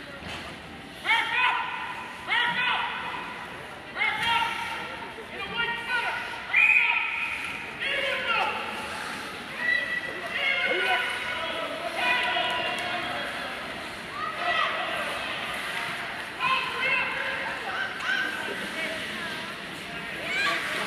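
A man shouts loudly nearby in a large echoing arena.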